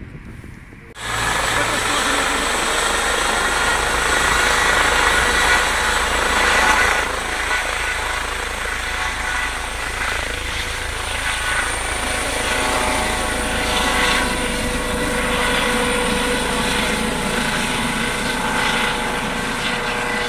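A helicopter's engine whines loudly and its rotor thumps steadily as it lifts off and climbs overhead.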